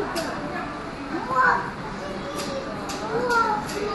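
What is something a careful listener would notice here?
A young child chatters nearby.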